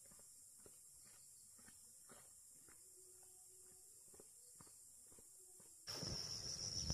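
Footsteps crunch on a dirt road.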